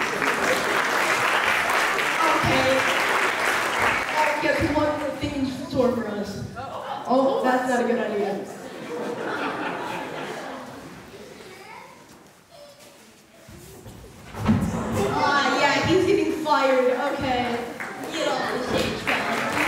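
A young boy speaks through a microphone and loudspeaker.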